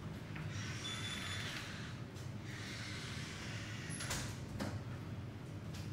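Footsteps walk across a hard floor nearby.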